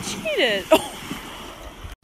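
Water splashes as a dog swims quickly.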